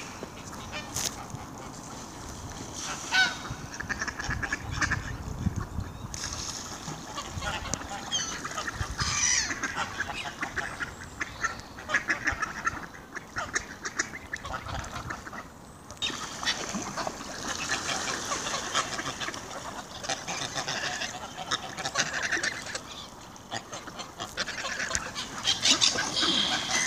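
Gulls call and squawk over water.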